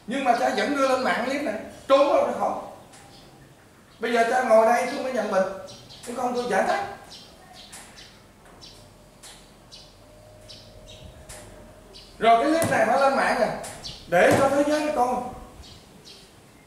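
A man speaks calmly over a loudspeaker, echoing in the room.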